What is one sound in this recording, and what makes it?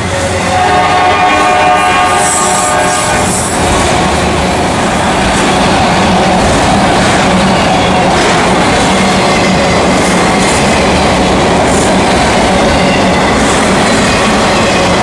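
A freight train rolls past, its wheels rumbling and clattering on steel rails.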